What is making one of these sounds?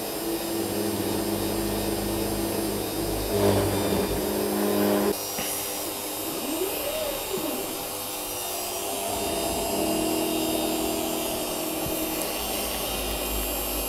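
A milling machine's spindle whirs steadily.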